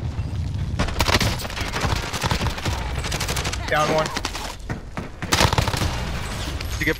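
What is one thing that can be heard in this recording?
Automatic gunfire rattles in short bursts.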